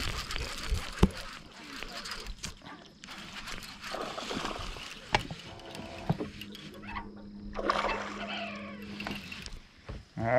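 A fishing reel clicks sharply as it is handled.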